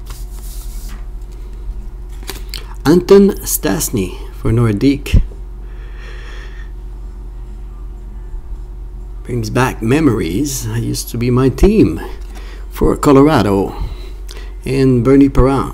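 Trading cards rustle and slide against each other in someone's hands.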